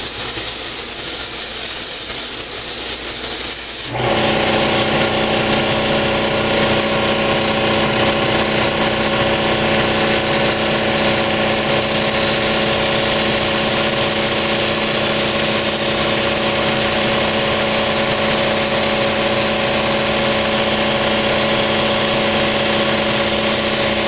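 A spray gun hisses steadily as it sprays paint.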